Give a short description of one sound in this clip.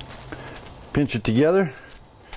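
A man speaks briefly up close.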